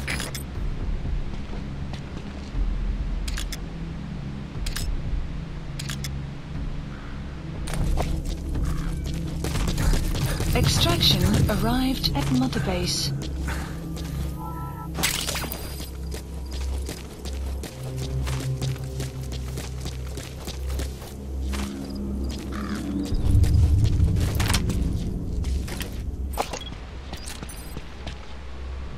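Footsteps crunch on dirt and rocks.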